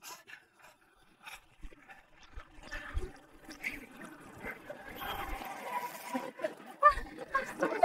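Waves lap against an inflatable boat.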